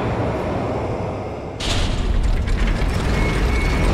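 Heavy metal bars slam down with a clang.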